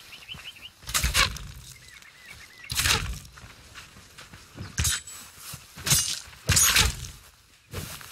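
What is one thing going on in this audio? A spear strikes a creature with heavy thuds.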